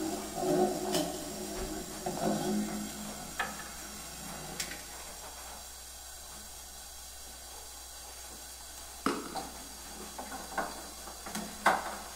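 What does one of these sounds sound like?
Small objects clink and knock on a table close to a microphone.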